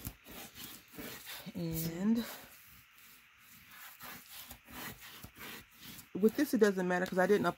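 A plastic tool rubs and scrapes across a sheet of paper.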